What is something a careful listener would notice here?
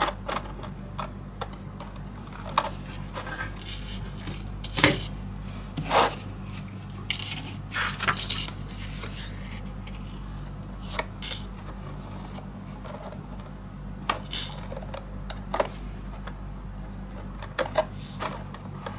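Stiff paper rustles and scrapes against a tabletop as hands move it.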